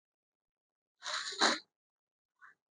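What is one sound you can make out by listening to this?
Silk fabric rustles as it is unfolded.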